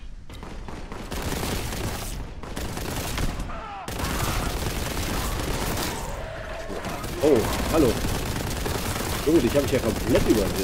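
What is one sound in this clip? Rapid gunfire rattles and booms in an echoing hall.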